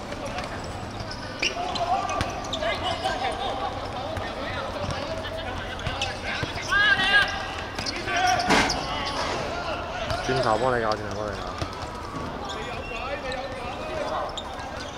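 Young men shout and talk outdoors.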